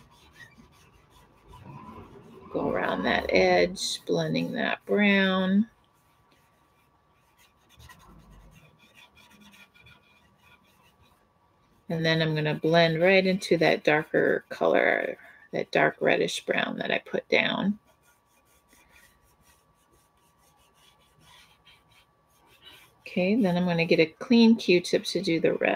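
An oil pastel scrapes softly across paper.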